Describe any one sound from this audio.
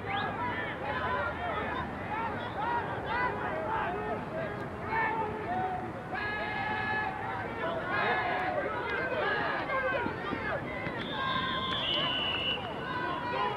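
A crowd of young players and spectators shouts and cheers outdoors.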